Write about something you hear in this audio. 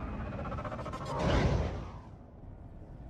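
A craft whooshes past.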